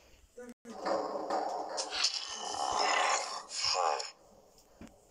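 A large beast growls loudly up close.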